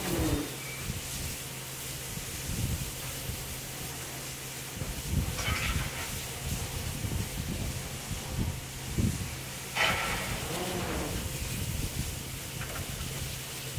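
A steam locomotive rumbles steadily at idle.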